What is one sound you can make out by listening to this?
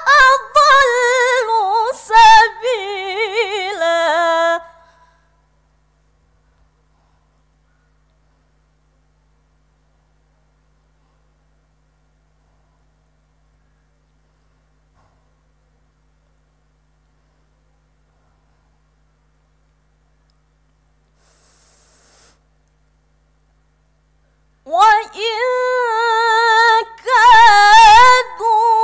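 A woman chants melodically into a microphone, with long held notes and pauses for breath.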